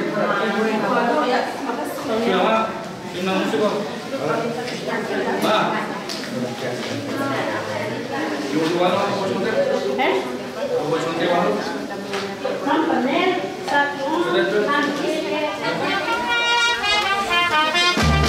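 Several women talk together nearby in a lively murmur.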